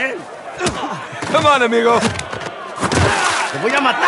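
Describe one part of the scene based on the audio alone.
A man laughs and taunts.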